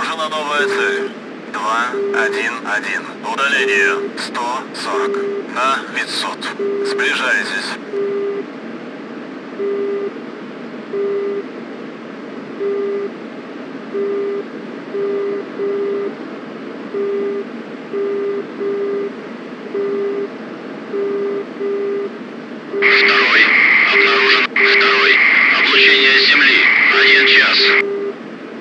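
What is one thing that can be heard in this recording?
A warning tone beeps over and over at an even pace.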